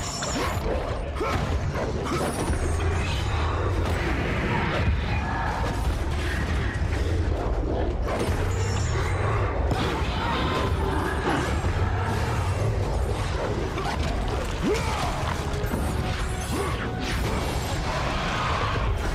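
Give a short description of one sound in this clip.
Blades slash and clang in a fierce fight.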